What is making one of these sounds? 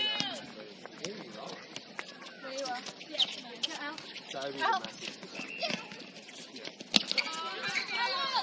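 A netball thuds as it is passed and caught.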